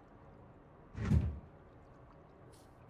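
A glass shower door slides open.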